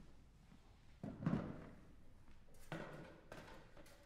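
A chair is set down with a knock.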